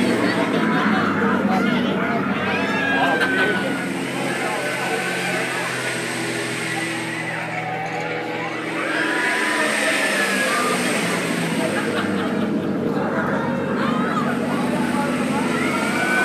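Young riders shout and squeal overhead.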